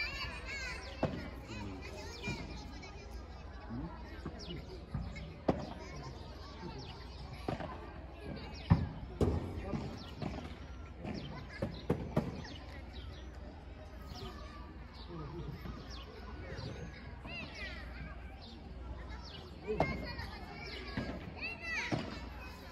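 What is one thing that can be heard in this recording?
Paddle rackets strike a ball with sharp pops.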